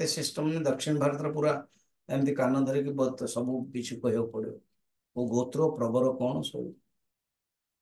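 An elderly man speaks with animation through a microphone, as on an online call.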